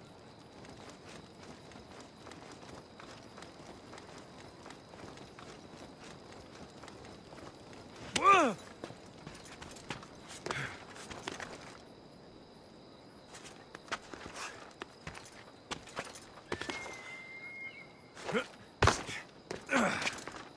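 A climber's hands and feet scrape and knock on rock.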